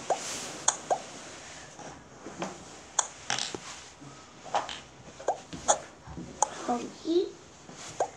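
A young boy makes soft sounds with his voice close by.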